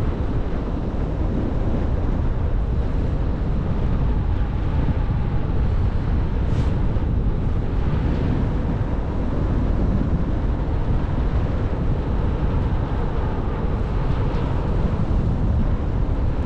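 Strong wind roars steadily past a microphone, high in the open air.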